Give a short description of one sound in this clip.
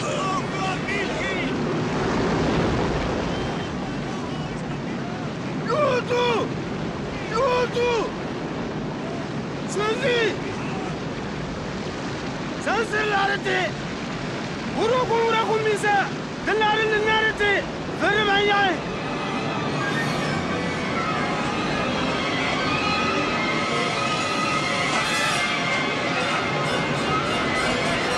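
Strong wind roars steadily outdoors.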